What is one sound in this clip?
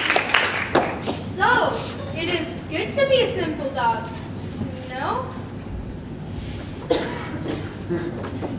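A young woman speaks clearly in an echoing hall.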